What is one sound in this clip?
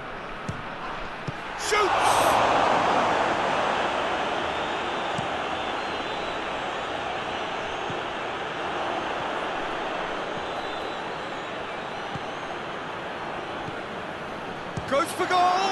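A large stadium crowd roars and cheers, swelling loudly and then slowly settling.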